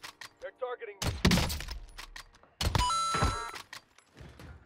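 A sniper rifle fires a loud, echoing shot.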